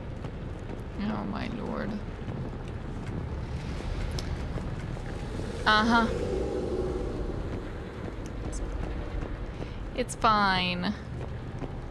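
A young woman speaks briefly and casually into a close microphone.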